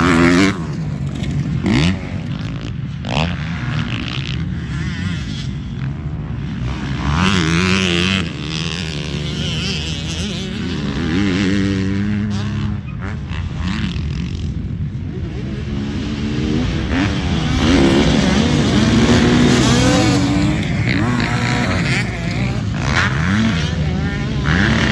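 Dirt bike engines rev and whine loudly, rising and falling.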